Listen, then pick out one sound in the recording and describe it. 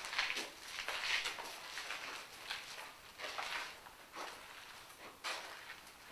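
A young woman whispers nearby.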